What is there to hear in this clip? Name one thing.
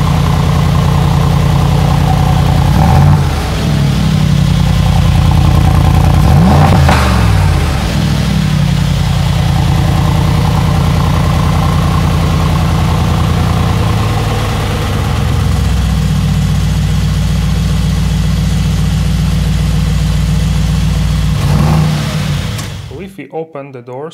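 A powerful car engine idles with a deep, rumbling burble.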